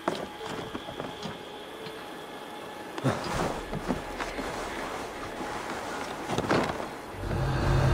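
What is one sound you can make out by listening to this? Wooden planks creak and thud as a climber pulls up a wooden tower.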